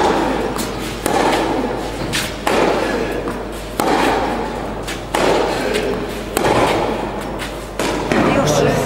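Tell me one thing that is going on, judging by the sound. Tennis balls are struck back and forth with sharp pops that echo in a large hall.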